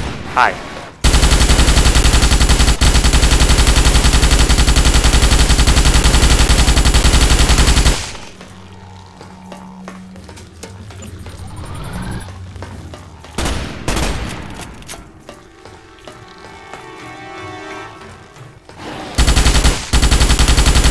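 A rapid-fire gun shoots in long, loud bursts.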